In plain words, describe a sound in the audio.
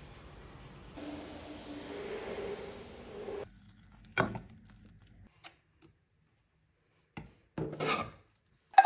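A spoon scrapes and stirs in a pot.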